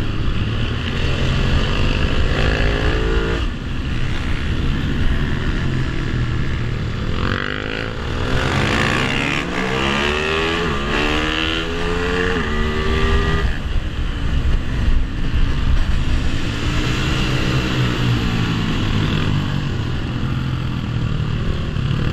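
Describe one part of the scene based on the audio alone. A motorcycle engine roars and revs up and down close by.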